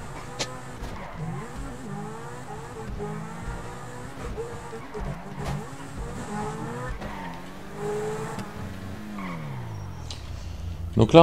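A sports car engine revs and roars as the car speeds along.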